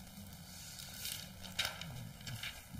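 Book pages rustle as they are turned.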